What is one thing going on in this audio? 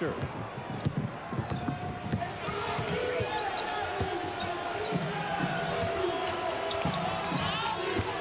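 A basketball thuds as it is dribbled on the court.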